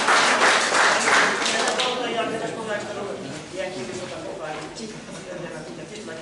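Plucked zithers play a lively folk tune together in a large hall.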